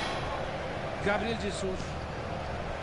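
A young man speaks briefly into a microphone nearby.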